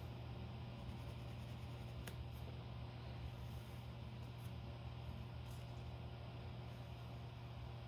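A marker squeaks faintly across paper.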